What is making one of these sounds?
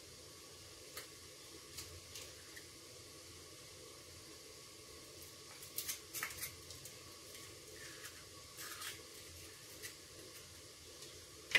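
A spoon taps and scrapes against a glass bowl.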